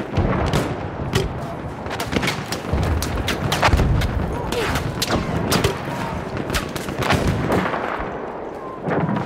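Rifle shots crack repeatedly, echoing between rocky walls.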